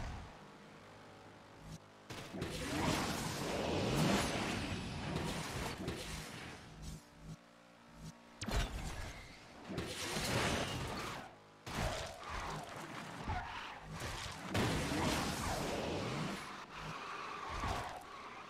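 A racing car engine roars loudly, surging and fading in waves.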